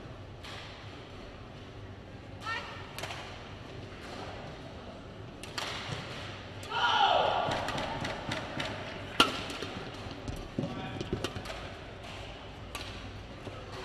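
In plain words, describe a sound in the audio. Badminton rackets smack a shuttlecock back and forth in a quick rally, in a large echoing hall.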